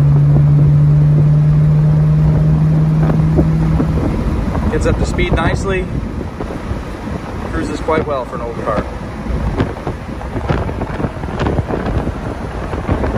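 Wind rushes and buffets loudly past an open car.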